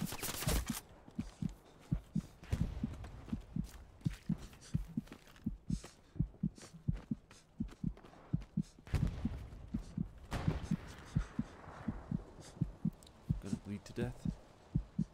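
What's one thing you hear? Footsteps thud steadily through dry reeds.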